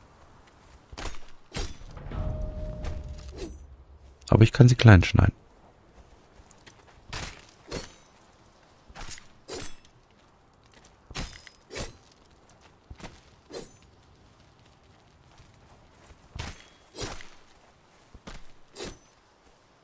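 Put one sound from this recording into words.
A blade slices wetly into a carcass in short, repeated cuts.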